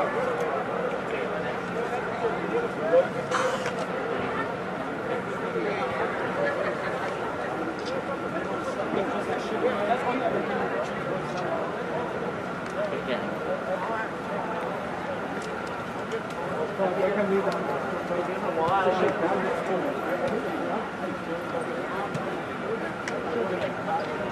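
Many people chatter at a distance in a large echoing indoor hall.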